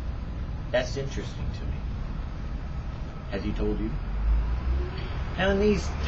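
A middle-aged man speaks calmly and slowly, close by.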